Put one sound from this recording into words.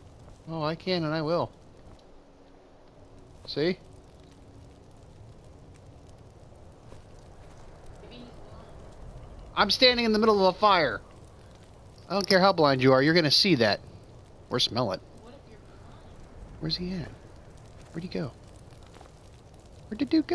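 A fire crackles and burns.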